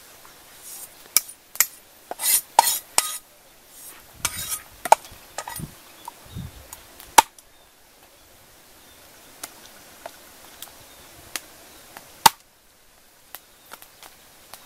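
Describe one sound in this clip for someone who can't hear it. A cleaver chops with sharp knocks on a wooden board.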